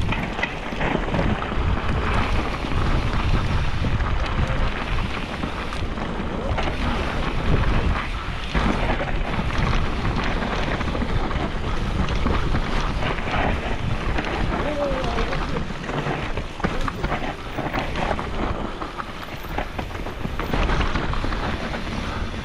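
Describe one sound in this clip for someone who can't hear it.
Bicycle tyres crunch and rattle over a rough dirt trail full of leaves and twigs.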